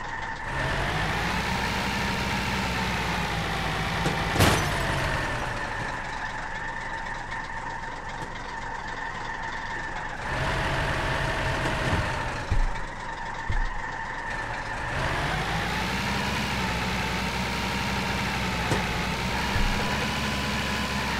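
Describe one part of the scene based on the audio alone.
A truck engine hums steadily and rises and falls in pitch as it speeds up and slows down.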